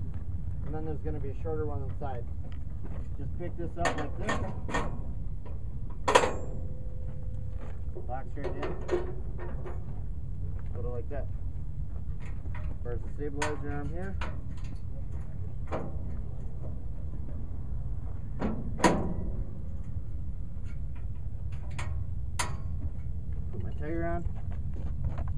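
A man speaks calmly, explaining nearby.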